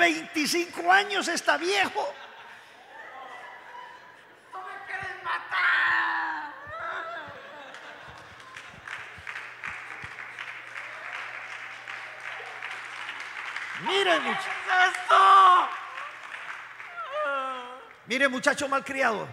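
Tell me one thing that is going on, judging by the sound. A man sobs and cries out.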